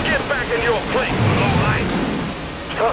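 A mine explodes with a low boom.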